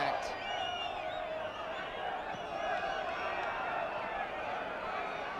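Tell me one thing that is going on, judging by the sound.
A large crowd roars and whistles outdoors.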